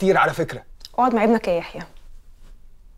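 A young woman answers in a strained voice, close by.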